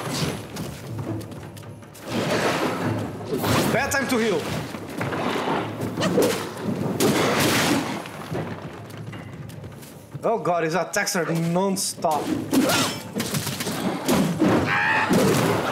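A sword swishes and clangs in quick strikes.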